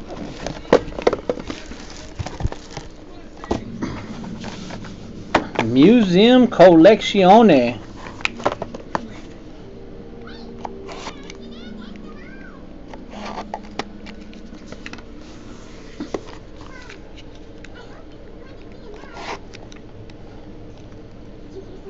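Card packs and boxes rustle and tap as they are handled.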